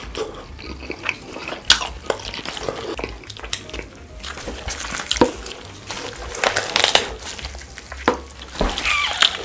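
Gloved hands tear apart roasted meat with wet, sticky squelches close to a microphone.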